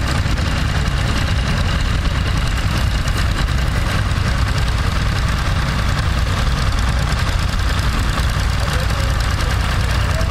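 A tractor engine chugs steadily close by.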